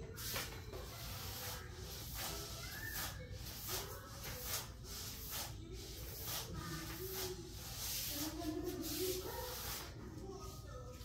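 A broom sweeps across a tiled floor with soft brushing strokes.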